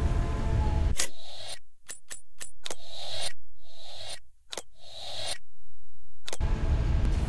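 Short menu clicks tick sharply.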